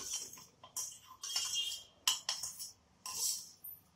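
Liquid pours into a pan with a soft splash.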